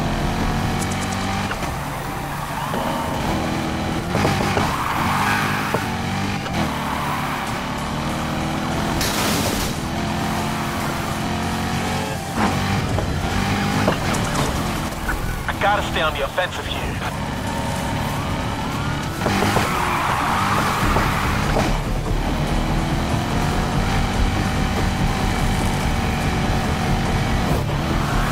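A sports car engine roars loudly, revving up and down as it races.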